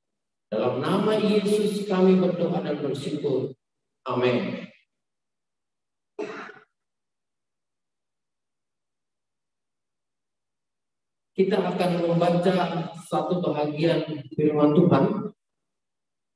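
A man speaks calmly into a microphone, heard through an online call, pausing now and then.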